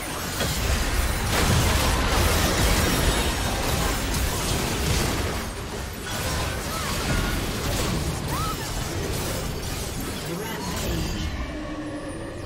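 Sword strikes and hits clash rapidly.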